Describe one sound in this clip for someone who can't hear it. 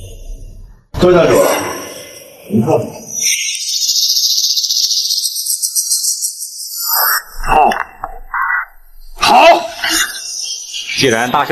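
An elderly man speaks with surprise nearby.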